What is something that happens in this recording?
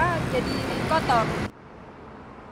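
A young woman speaks calmly and close to a microphone.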